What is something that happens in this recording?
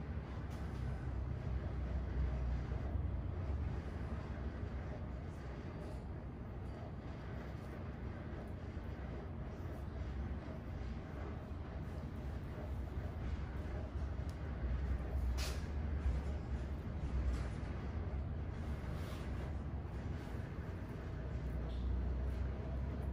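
Fingers rustle through damp hair close by.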